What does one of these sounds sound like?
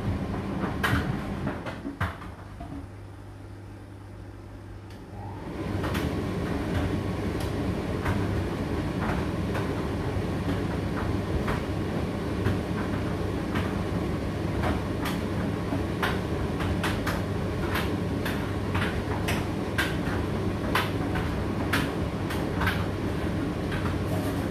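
Clothes knock and click inside a turning tumble dryer drum.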